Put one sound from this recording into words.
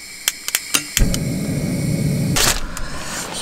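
A gas camping stove lights and roars.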